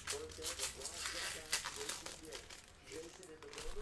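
Plastic card wrappers crinkle and rustle.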